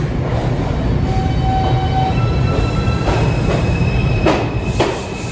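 Metal wheels squeal on the rails as a subway train moves.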